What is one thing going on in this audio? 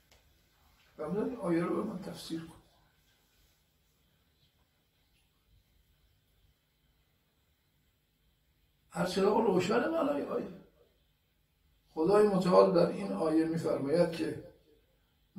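An elderly man speaks calmly into a microphone, in short bursts with long pauses.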